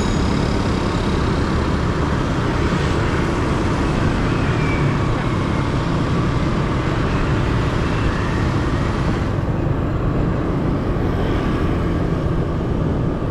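Wind rushes loudly past, as if riding in open air.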